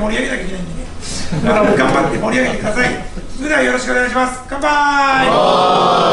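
A man gives a loud toast to a group nearby.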